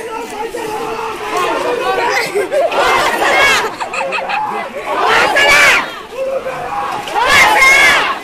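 A crowd of people talk and call out excitedly close by.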